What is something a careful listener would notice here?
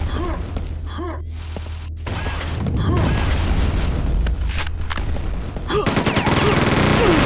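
A machine gun fires rapid bursts with sharp cracks.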